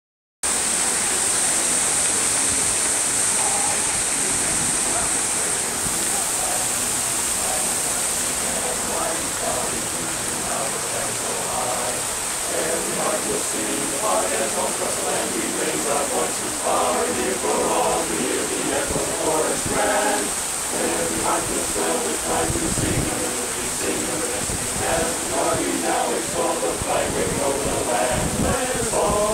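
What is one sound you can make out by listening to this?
A crowd of men and women murmurs and chats outdoors.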